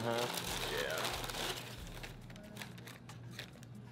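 Tissue paper rustles as it is pulled from a box.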